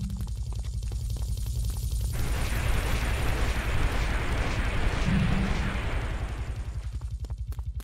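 A helicopter whirs overhead.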